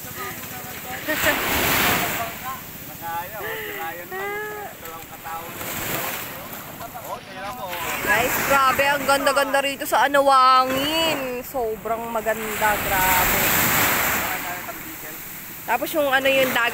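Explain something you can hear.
Waves wash and splash nearby.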